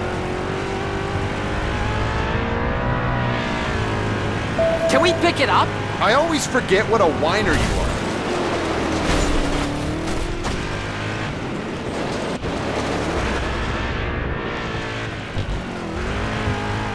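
A buggy engine roars and revs up and down.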